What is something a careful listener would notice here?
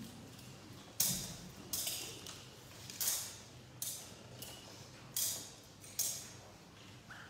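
A censer's chains clink as it swings.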